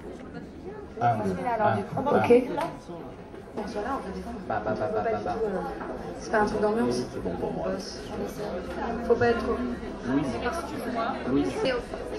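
A man speaks loudly to an audience outdoors.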